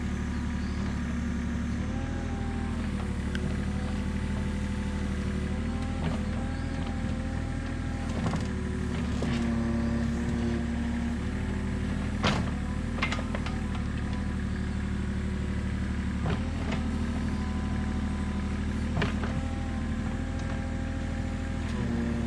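A small excavator's diesel engine runs with a steady drone and hydraulic whine.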